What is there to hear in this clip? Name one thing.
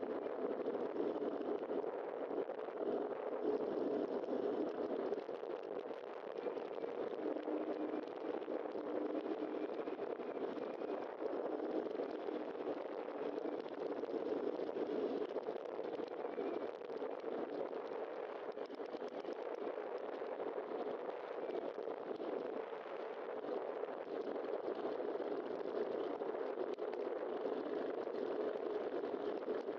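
Tyres roll over rough pavement.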